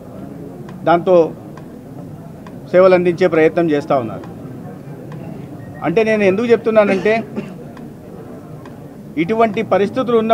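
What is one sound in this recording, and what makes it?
A middle-aged man speaks into microphones in short, earnest bursts with pauses between.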